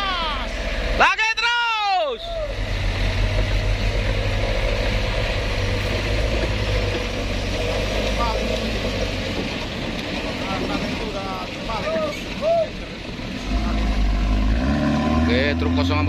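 A heavy truck engine strains and roars nearby.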